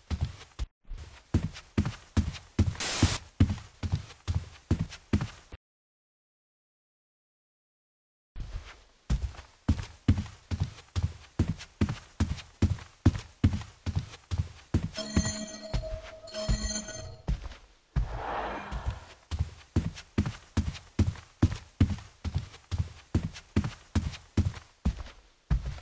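Footsteps thud steadily and evenly on a hard floor.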